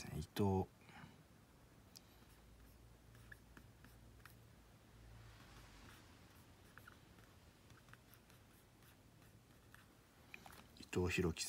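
A marker squeaks and taps in short strokes on a whiteboard.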